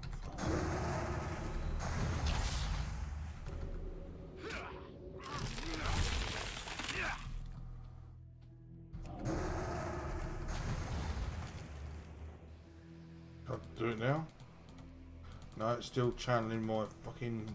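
Magic spells whoosh and crackle in bursts.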